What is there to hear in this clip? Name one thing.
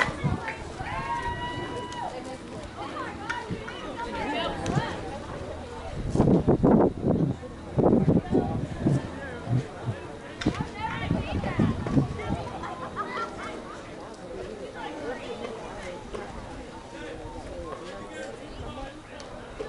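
Men and women shout and call out across an open field outdoors.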